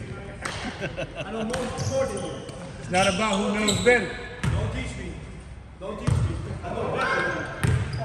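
A basketball bounces and thuds on a hardwood floor in an echoing hall.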